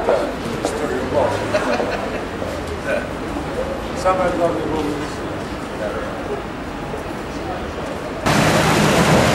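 An elderly man talks calmly outdoors.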